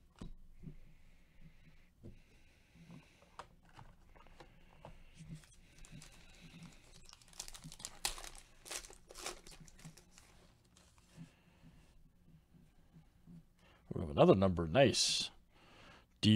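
Gloved hands slide and shuffle trading cards.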